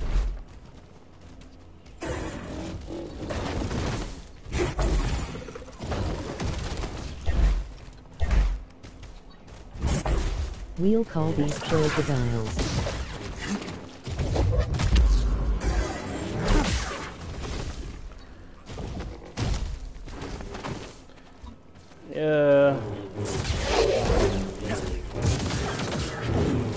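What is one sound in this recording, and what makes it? Lightsabers hum and clash.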